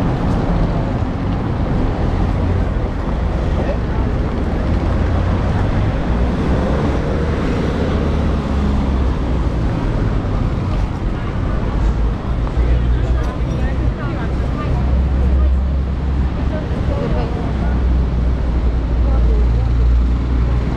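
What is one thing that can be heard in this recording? Footsteps tap on paving stones outdoors.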